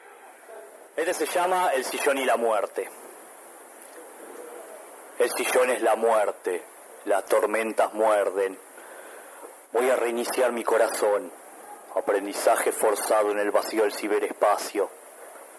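A man speaks calmly into a microphone close by.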